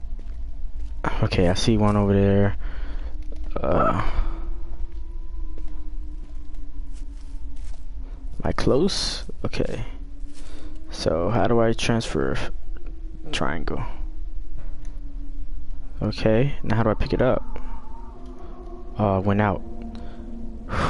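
A man talks with animation into a headset microphone, close up.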